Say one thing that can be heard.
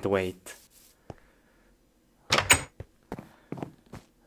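A wooden door clicks open.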